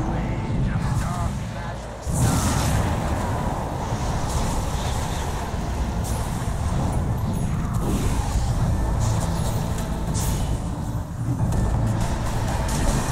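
Spell effects crackle and blast during a fight.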